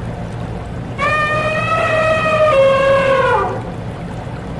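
An elephant trumpets loudly.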